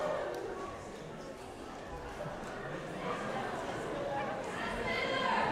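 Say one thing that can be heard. Voices of young people chatter and murmur in a large echoing hall.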